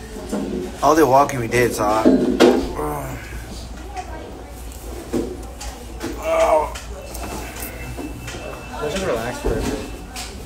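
A young man talks close by with animation.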